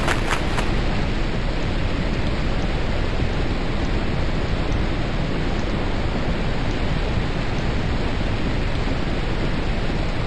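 Water rushes steadily along a sailing boat's hull.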